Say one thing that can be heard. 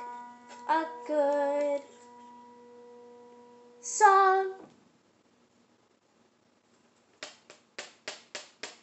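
A piano plays notes up close, with a pause in the middle.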